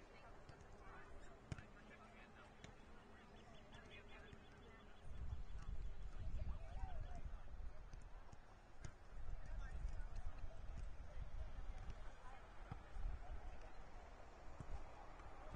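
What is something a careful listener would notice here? Players shout to each other far off across an open field.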